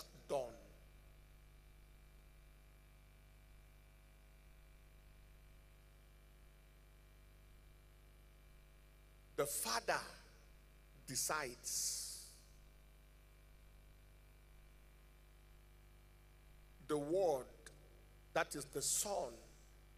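A man preaches with animation into a microphone, in short bursts with long pauses.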